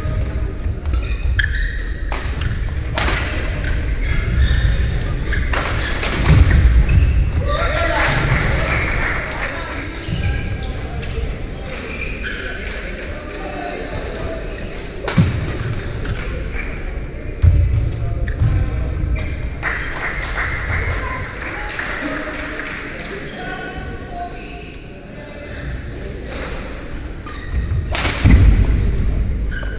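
Rackets smack a shuttlecock back and forth in a large echoing hall.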